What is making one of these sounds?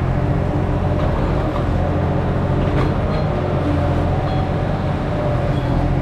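A digger's hydraulics whine as the arm moves.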